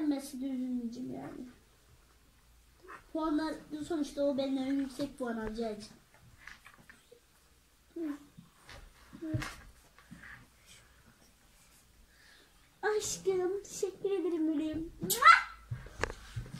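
Young girls talk with animation close by.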